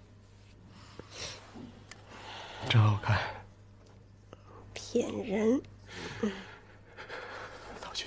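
A woman laughs softly and speaks quietly.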